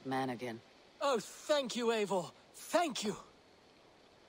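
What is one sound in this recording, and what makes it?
A man thanks someone warmly and eagerly.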